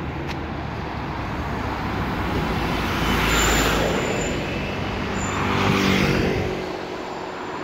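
A bus engine rumbles as it passes close by.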